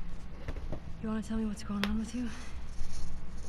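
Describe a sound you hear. A young woman asks a question in a tense, low voice.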